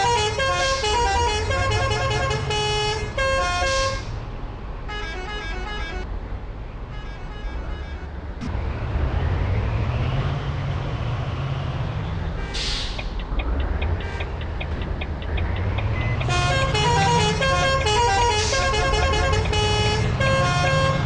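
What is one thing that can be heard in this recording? A bus engine rumbles and revs up and down as the bus drives.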